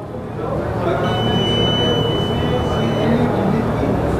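An electronic unit gives a long, steady high beep.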